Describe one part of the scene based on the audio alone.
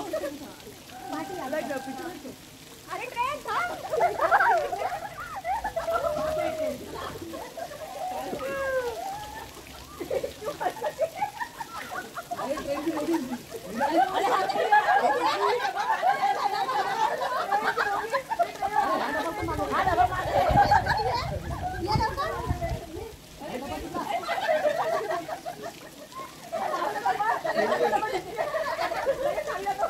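Water splashes as swimmers move about.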